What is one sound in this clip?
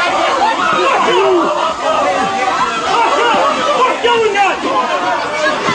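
A man shouts orders loudly.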